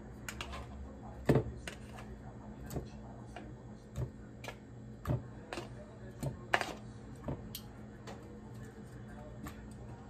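Tongs drop small fruits into a plastic cup with soft knocks.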